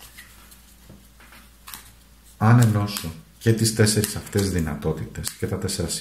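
A deck of cards is shuffled by hand.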